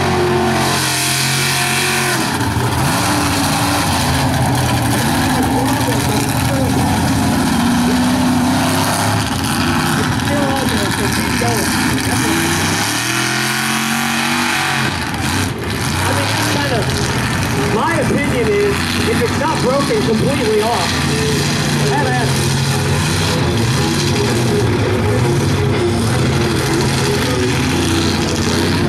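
A big truck engine roars and revs loudly.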